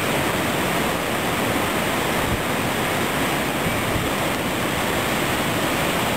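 A flooded stream rushes and roars loudly and steadily.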